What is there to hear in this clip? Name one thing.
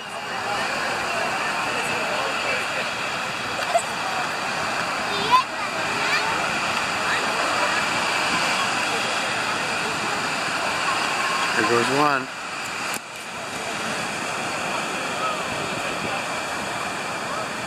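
Waves break and wash onto the shore in a steady roar.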